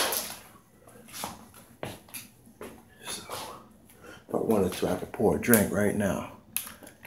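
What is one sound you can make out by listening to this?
A plastic bottle crinkles as a hand grips it.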